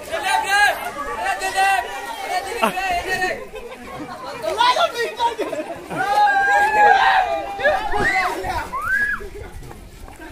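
Young men and boys shout and sing loudly close by, outdoors.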